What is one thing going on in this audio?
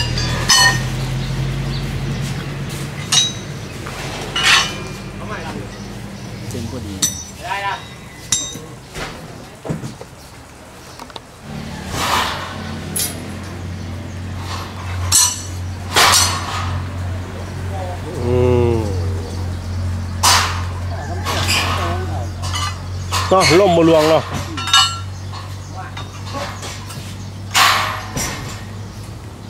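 Metal pieces clank and knock.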